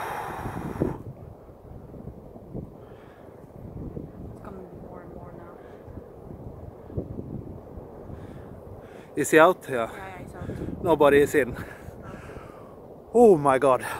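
An avalanche rumbles down a mountainside in the distance.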